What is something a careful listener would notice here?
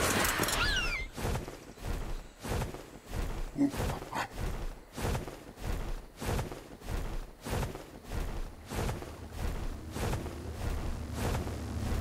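Large wings flap in a steady rhythm.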